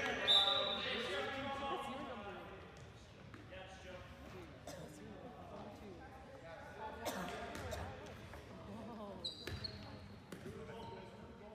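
A basketball thumps on a hard floor.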